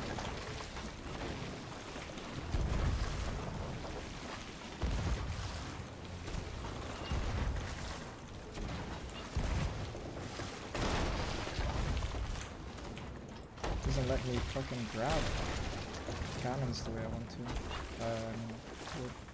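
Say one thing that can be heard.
Water splashes as a bucket scoops it up and tosses it out.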